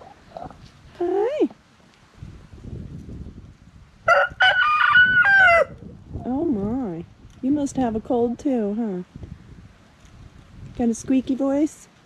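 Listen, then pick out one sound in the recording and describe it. Hens cluck and call in rising, wavering tones.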